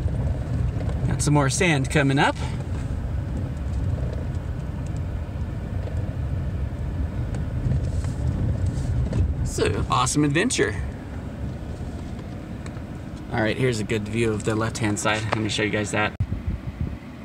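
A vehicle engine rumbles steadily, heard from inside the cab.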